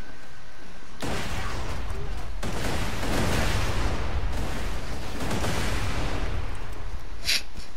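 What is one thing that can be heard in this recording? An explosion roars and rumbles.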